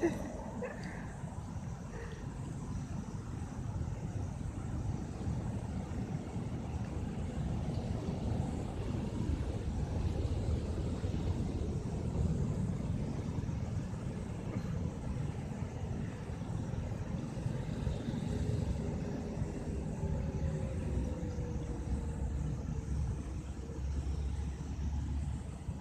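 A young woman talks softly close by.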